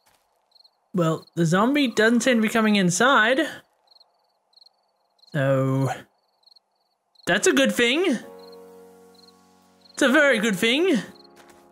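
A woman talks with animation into a close microphone.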